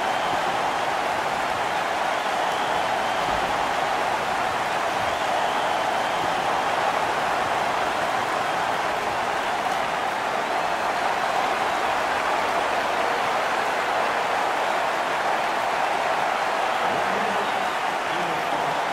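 A large crowd roars steadily in an arena.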